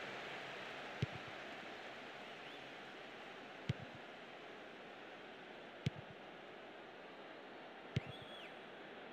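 A football is kicked with sharp, dull thumps now and then.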